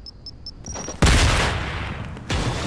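An explosion booms loudly.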